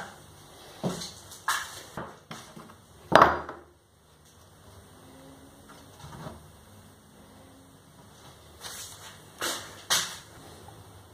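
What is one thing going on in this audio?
Wooden boards knock and scrape on a table.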